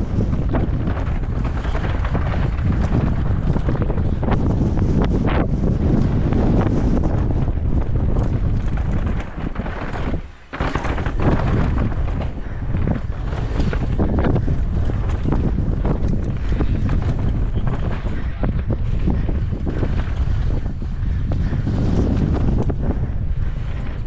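Bike tyres crunch and rattle over a rough dirt trail.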